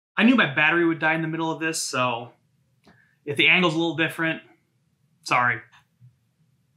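A man speaks with animation, close up.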